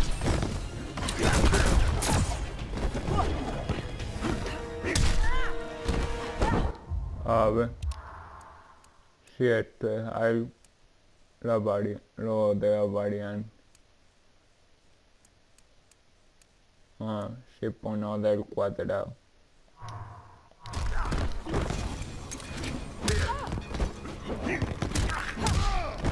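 Punches and kicks land with heavy thuds and crashing impacts.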